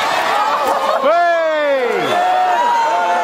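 A crowd whoops in a rising and falling cheer as a runner tumbles down.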